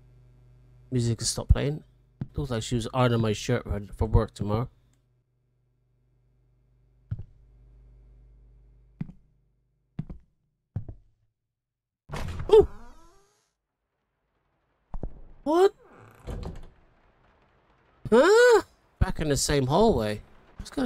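A middle-aged man talks into a close microphone in bursts, with pauses between.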